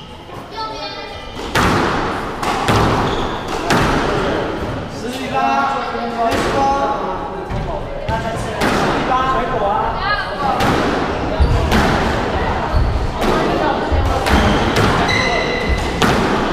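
Rubber shoes squeak on a wooden court floor.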